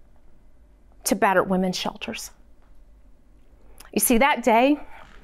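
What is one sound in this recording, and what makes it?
A woman speaks expressively into a clip-on microphone, in short bursts with pauses.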